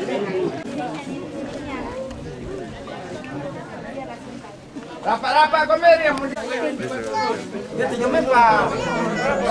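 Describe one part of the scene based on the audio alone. A crowd of adults chatters outdoors.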